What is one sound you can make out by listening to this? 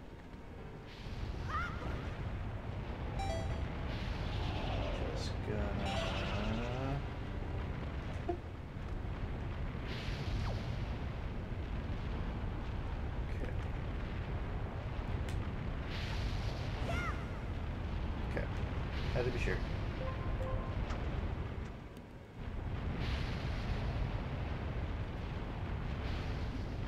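Lava rumbles and bubbles with a deep, steady roar.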